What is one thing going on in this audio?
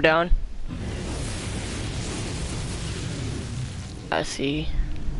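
An icy blast hisses and roars.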